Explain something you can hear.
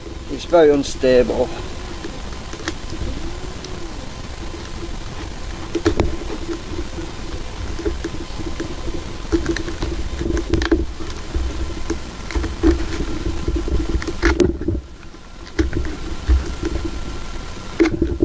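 A pencil scratches lightly across a tin can.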